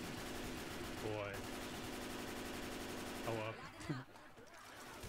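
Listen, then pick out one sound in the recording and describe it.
Zombies snarl and groan up close.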